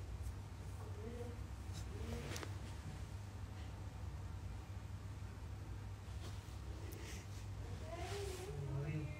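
A young woman speaks softly and close to a phone's microphone.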